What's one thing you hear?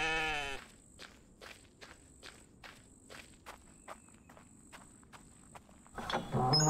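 Footsteps tread steadily over grass and dirt.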